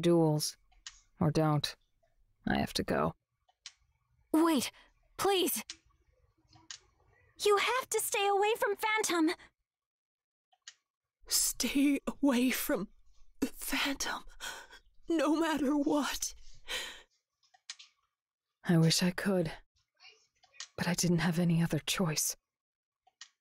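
A man reads lines aloud with animation, close to a microphone.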